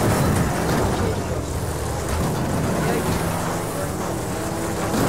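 A banger racing car's engine revs hard.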